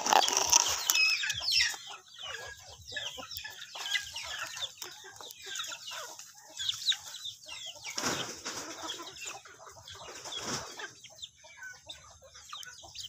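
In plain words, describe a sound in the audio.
Chickens peck and scratch at dry ground.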